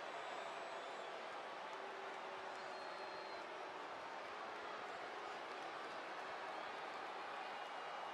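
A large arena crowd cheers and roars steadily.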